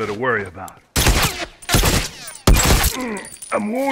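Loud gunshots fire in quick bursts.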